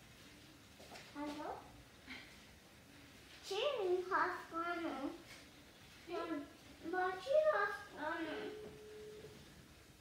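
A young child speaks close by with animation.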